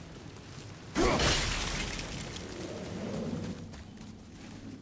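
A heavy rock shatters with a loud crash and crumbles away.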